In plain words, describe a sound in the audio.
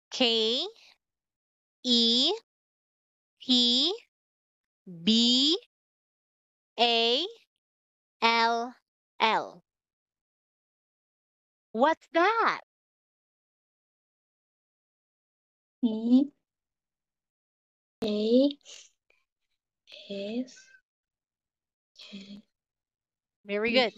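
A young woman speaks letters out slowly and clearly over an online call.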